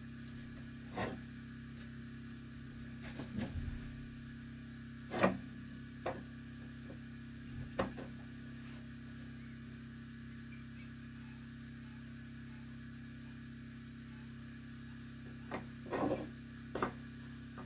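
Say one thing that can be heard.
A hand knocks lightly against a metal stove door.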